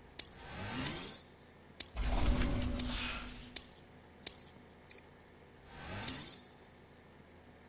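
Electronic interface sounds whoosh and chime in short bursts.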